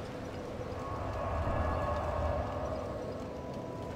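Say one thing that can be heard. A fire flares up with a low whoosh.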